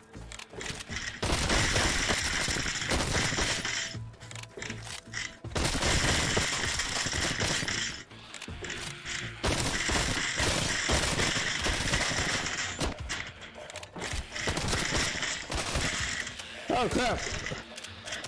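Zombies groan and snarl.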